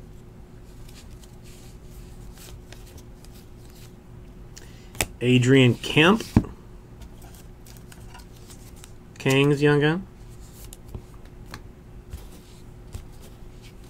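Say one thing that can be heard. Trading cards rustle and flick softly in hands.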